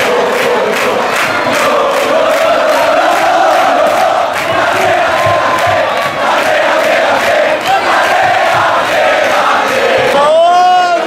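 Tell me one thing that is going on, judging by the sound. A large stadium crowd claps in rhythm.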